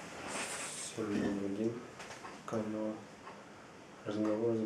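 A young man speaks close by in a calm voice.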